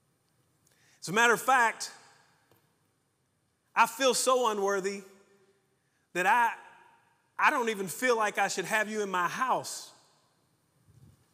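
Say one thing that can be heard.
A middle-aged man speaks with animation through a microphone in a large echoing hall, in short bursts with pauses.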